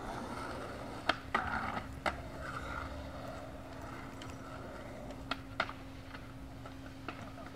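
Skateboard wheels roll and rumble on asphalt.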